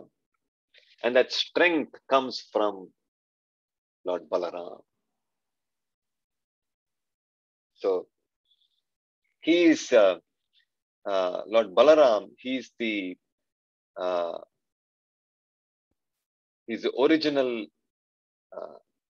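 A young man speaks with animation over an online call, pausing between phrases.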